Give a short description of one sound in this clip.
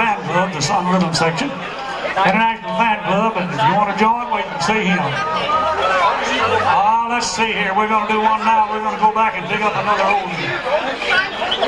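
An elderly man sings into a microphone over loudspeakers.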